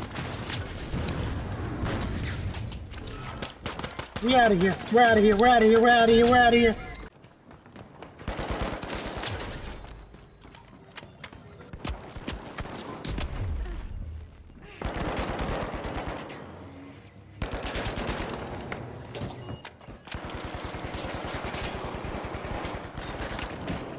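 Guns fire in rapid bursts of sharp shots.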